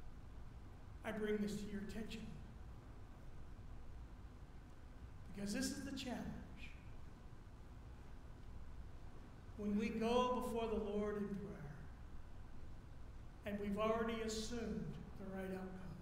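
An older man speaks calmly through a microphone, with long pauses.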